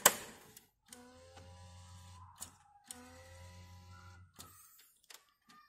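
An inkjet printer's mechanism whirs as it starts up.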